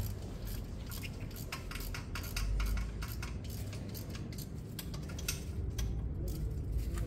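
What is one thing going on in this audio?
A ratchet wrench clicks rapidly.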